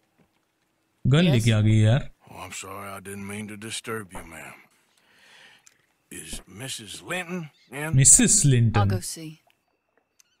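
A man's deep voice speaks calmly in a game scene.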